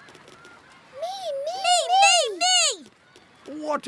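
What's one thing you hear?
Children shout together in high, excited voices.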